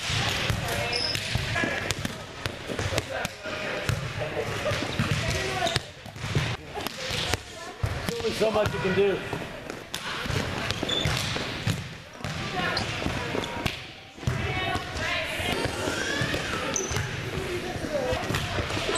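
A volleyball thumps off forearms and hands.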